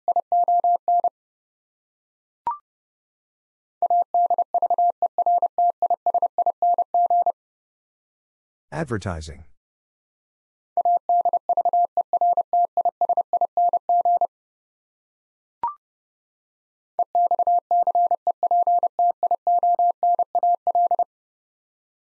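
A telegraph key taps out Morse code in quick, even beeps.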